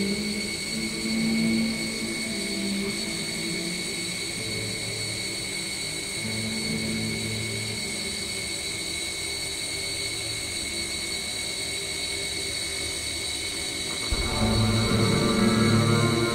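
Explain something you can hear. Ambient electronic music plays with steady droning tones.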